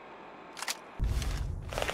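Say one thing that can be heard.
A low mechanical whoosh rumbles loudly.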